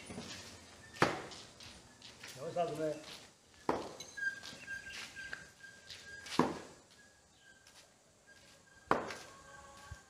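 Small objects land with sharp thuds on dirt ground.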